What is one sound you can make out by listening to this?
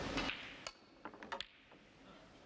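Snooker balls click against each other.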